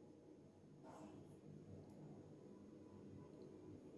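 A pot lid clinks onto a pan.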